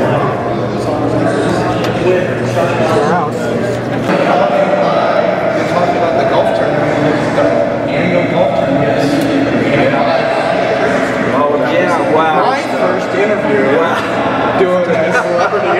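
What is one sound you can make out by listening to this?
A man in headphones talks into a microphone.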